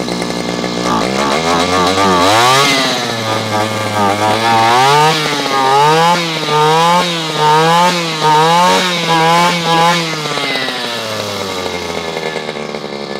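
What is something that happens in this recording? A small petrol engine revs up and down repeatedly, then settles back.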